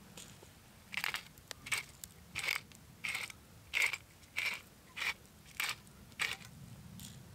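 A pepper mill grinds in short, rhythmic crunching bursts.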